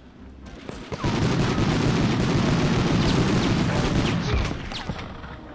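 A rifle fires in a rapid, continuous burst.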